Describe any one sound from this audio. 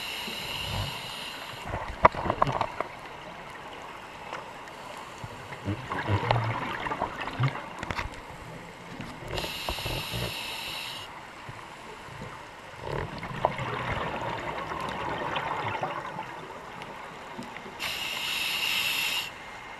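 Scuba air bubbles gurgle and rumble close by underwater, coming in bursts.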